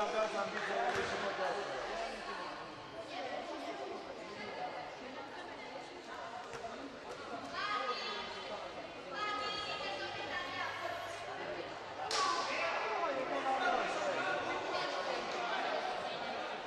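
Young women's voices chatter and shout in a large echoing hall.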